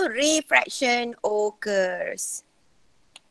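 A young woman speaks through an online call microphone.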